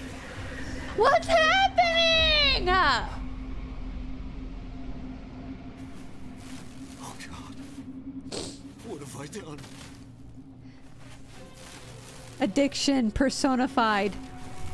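A man cries out in anguish.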